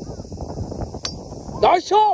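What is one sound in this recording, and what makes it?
A golf club strikes a ball with a sharp click.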